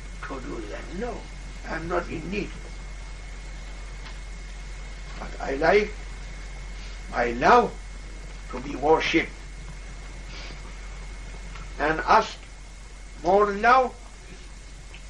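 An elderly man speaks calmly in short phrases with pauses, close by.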